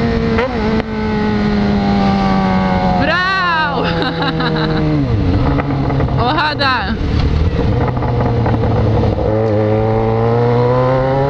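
A motorcycle engine hums steadily, with its pitch rising and falling as it speeds up and slows down.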